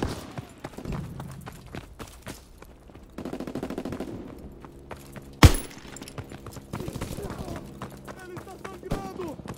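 Footsteps thud quickly over ground and gravel.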